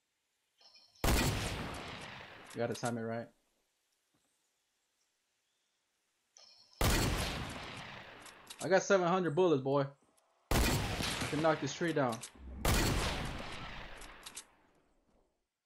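A shotgun fires loud, booming shots with a ringing echo.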